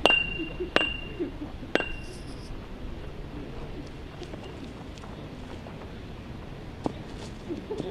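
A football is kicked with sharp thuds outdoors.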